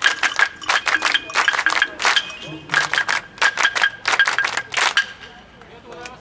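A crowd claps hands in a quick, sharp rhythm.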